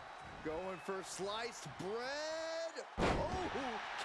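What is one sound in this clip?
A body slams hard onto a wrestling mat with a thud.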